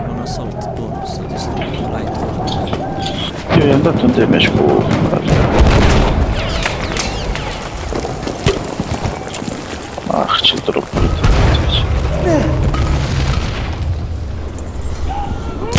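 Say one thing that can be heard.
Gunshots crack and explosions boom around a battle.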